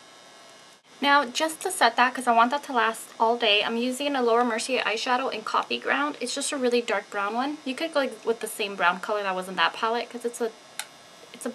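A young woman talks close to a microphone, calmly and with animation.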